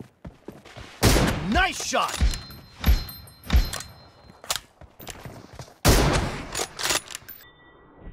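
Gunshots ring out in short sharp bursts.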